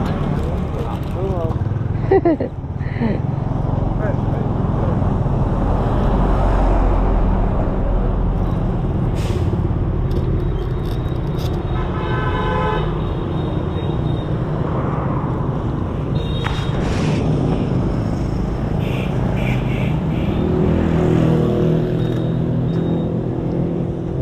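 Traffic rumbles past on a nearby road.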